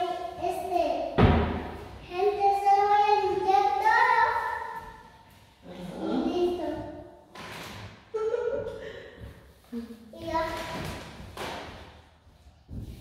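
A young child talks and calls out in a high voice nearby, in an echoing room.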